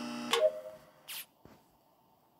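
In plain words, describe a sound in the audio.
A short electronic chime sounds.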